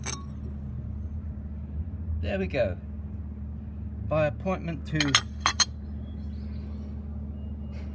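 A china saucer clinks faintly.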